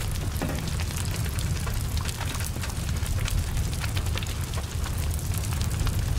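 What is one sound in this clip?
Flames crackle and pop sharply.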